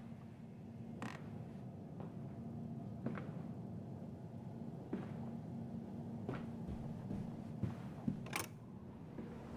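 Slow footsteps thud on a wooden floor.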